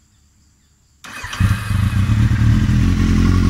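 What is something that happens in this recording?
A motorcycle engine cranks and starts, then idles with a loud, steady rumble.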